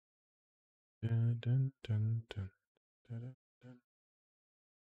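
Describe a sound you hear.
A man speaks calmly close to a microphone, in short bursts.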